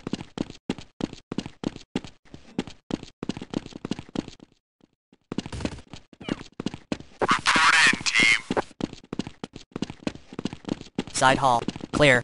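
Footsteps tread quickly and steadily on a hard floor.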